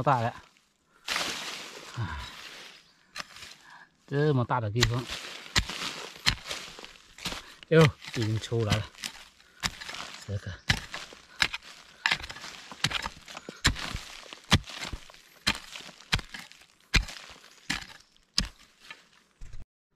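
A hoe chops into soil with repeated dull thuds.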